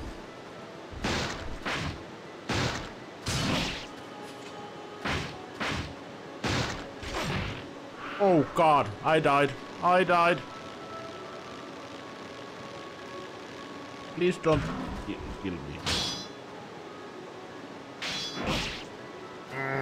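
Swords clash and swish in quick bursts.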